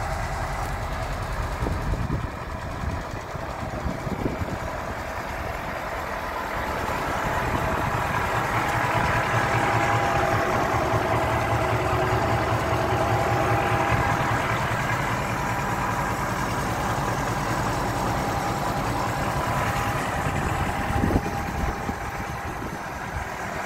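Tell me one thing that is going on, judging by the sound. A truck's diesel engine idles with a steady low rumble close by.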